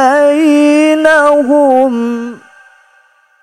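A young man chants in a long, melodic voice through a microphone, echoing in a large hall.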